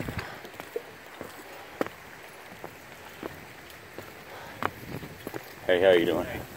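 Footsteps thud on a wooden bridge.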